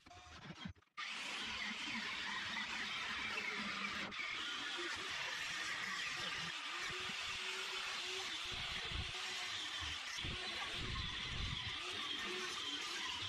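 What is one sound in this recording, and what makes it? An angle grinder whines loudly as it cuts through sheet metal.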